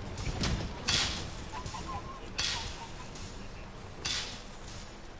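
Blades strike a monster with sharp metallic hits and crackling sparks.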